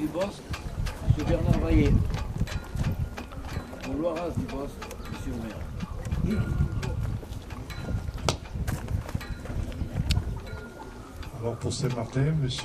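An elderly man speaks calmly into a microphone over a loudspeaker outdoors.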